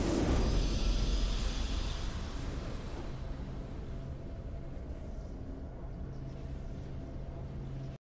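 A triumphant fanfare plays and slowly fades.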